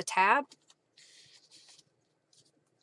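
Paper rustles softly as hands handle it.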